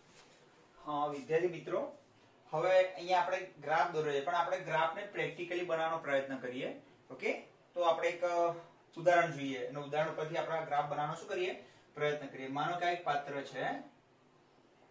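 A man lectures calmly and clearly, close by, in a small echoing room.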